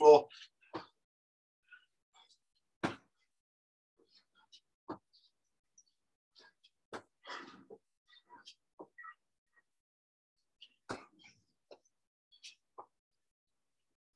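Feet thump lightly on the floor during exercises.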